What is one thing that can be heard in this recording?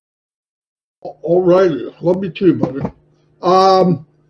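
An older man speaks with animation over an online call.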